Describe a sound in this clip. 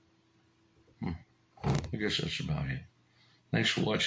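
An older man speaks close into a microphone.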